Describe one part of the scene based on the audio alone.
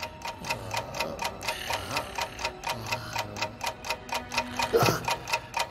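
A clock ticks loudly and steadily.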